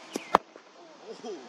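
A cricket bat strikes a leather ball.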